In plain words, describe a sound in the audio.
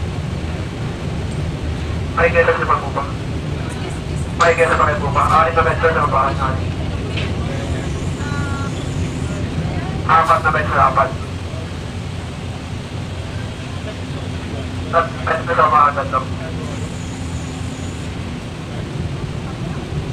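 A ship's engine rumbles low and steadily.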